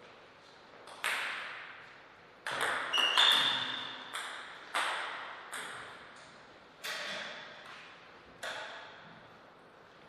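A table tennis ball clicks back and forth off paddles and the table, echoing in a large hall.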